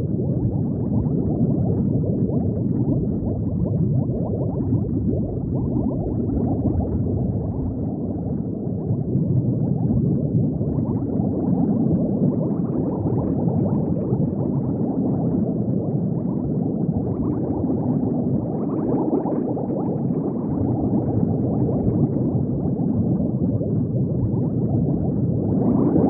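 Water bubbles and gurgles steadily, deep and muffled as if underwater.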